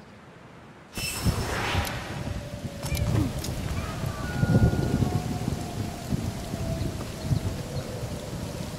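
Loud, booming battle sound effects start suddenly after a quiet spell.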